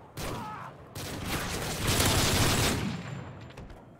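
A rifle fires a rapid burst of shots close by.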